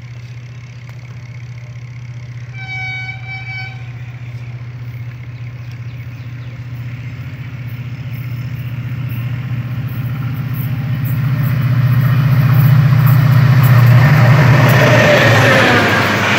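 A diesel locomotive rumbles closer and roars past.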